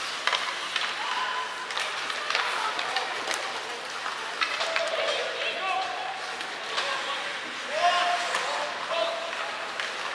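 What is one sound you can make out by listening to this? Young men shout to each other across an echoing rink.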